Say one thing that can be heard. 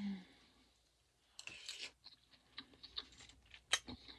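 A woman slurps a spoonful of food.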